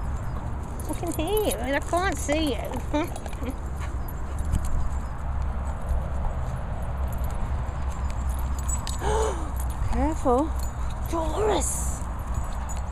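A dog whines in short high-pitched bursts.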